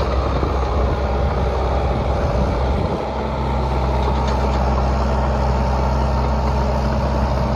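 A diesel engine rumbles steadily nearby.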